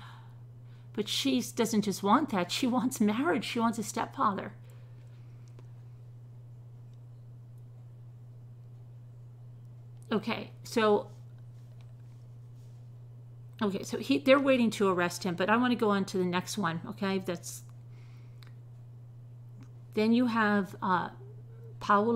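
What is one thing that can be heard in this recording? A middle-aged woman speaks calmly and thoughtfully, close to a microphone, with pauses.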